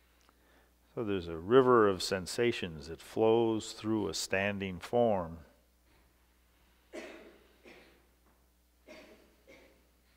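An elderly man speaks into a headset microphone, his voice loud and close, then quieter.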